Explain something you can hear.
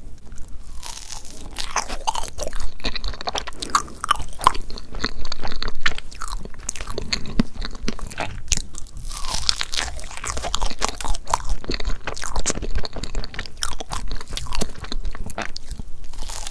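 A woman chews and smacks her lips close to a microphone.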